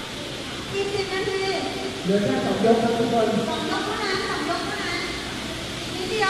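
A crowd of young people shouts and cheers in a large echoing hall.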